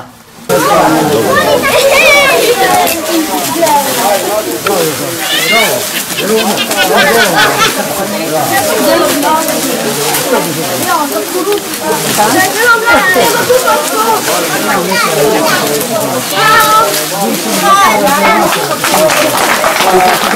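Dry corn husks rustle and tear as hands strip them.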